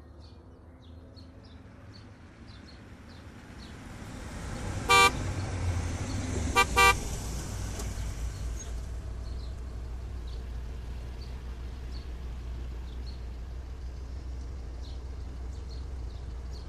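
A car engine rumbles low as a car drives slowly closer.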